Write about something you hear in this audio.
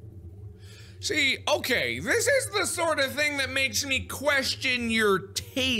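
A young man talks loudly and with animation into a microphone.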